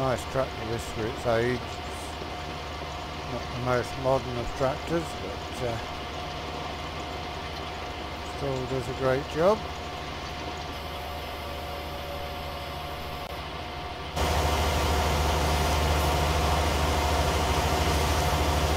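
A tractor engine rumbles steadily, growing louder partway through.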